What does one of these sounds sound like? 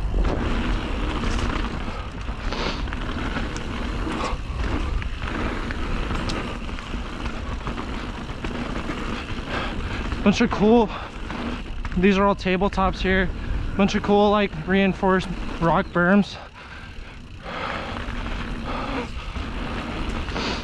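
Wind buffets loudly at the bike's speed.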